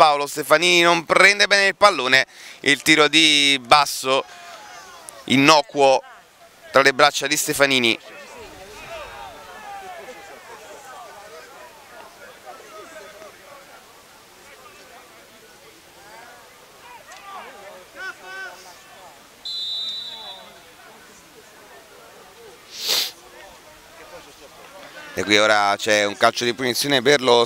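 A small crowd of spectators chatters faintly in the distance outdoors.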